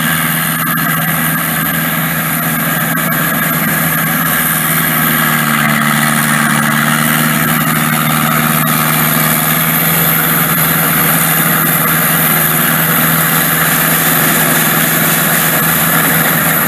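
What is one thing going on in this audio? A large machine engine drones steadily and loudly.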